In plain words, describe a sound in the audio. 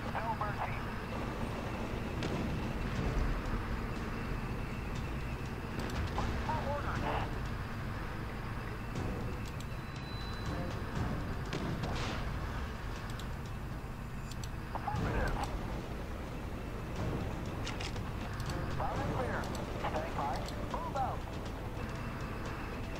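Tank engines rumble low and steadily.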